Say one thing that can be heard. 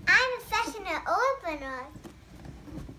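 A young girl speaks excitedly close by.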